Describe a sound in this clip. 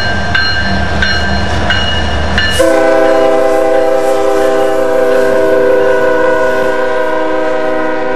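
Diesel freight locomotives rumble past.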